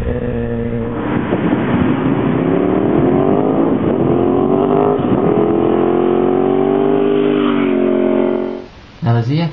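A motorcycle engine roars past up close.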